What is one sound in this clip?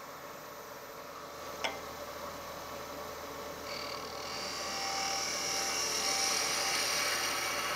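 A lathe spins with a steady whir.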